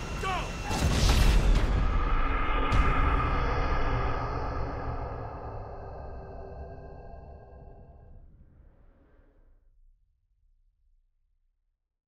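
A huge explosion booms and rumbles, then slowly fades away.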